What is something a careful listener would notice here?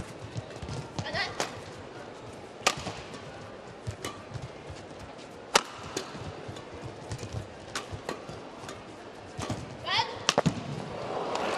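Rackets smack a shuttlecock back and forth in a fast rally.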